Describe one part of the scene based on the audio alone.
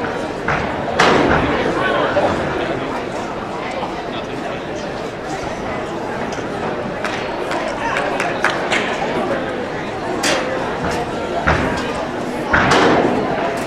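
A gymnast's feet thud onto a sprung floor.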